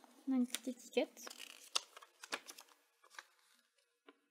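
Paper rustles and crinkles as hands unfold a leaflet close by.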